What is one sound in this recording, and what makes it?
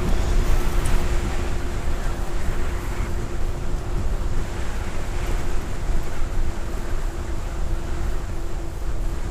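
An electric motor hums steadily.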